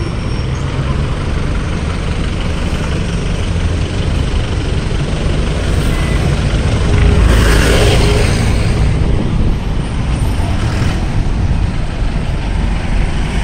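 Traffic engines rumble steadily along a busy street.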